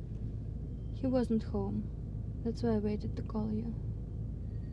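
A woman speaks softly and close by.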